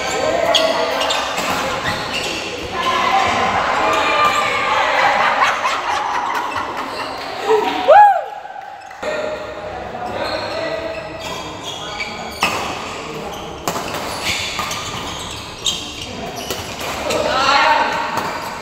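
Shoes squeak and shuffle on a court floor.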